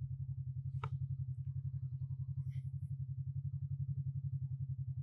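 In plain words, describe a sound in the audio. A motorcycle engine idles with a steady, low, throbbing rumble.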